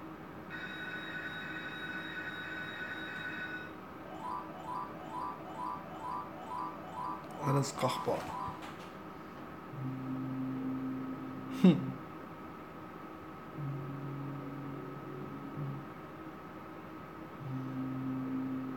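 A slot machine plays electronic jingles and tones.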